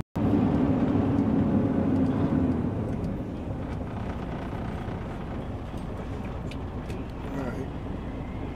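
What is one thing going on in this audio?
A truck engine rumbles steadily inside a cab.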